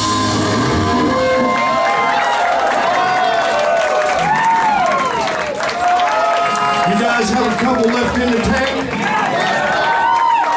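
A rock band plays loudly in a room that echoes.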